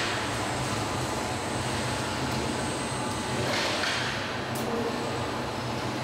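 A robotic arm whirs as it moves.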